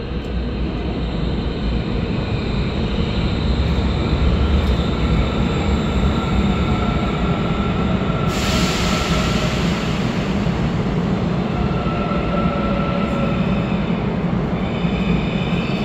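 A train rumbles into an echoing underground station, growing louder as it arrives.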